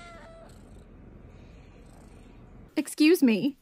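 A kitten meows softly.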